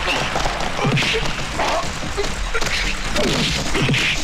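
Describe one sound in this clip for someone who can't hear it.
Fists thud as two men trade punches.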